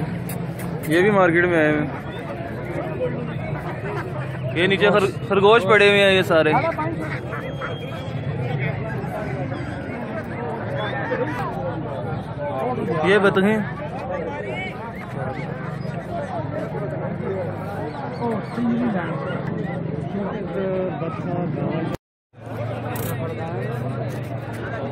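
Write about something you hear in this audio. Poultry clucks and calls nearby.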